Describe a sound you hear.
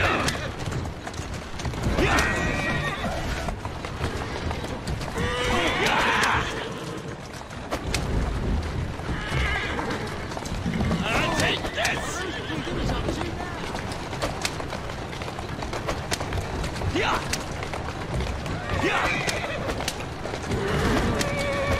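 Carriage wheels rumble over cobblestones.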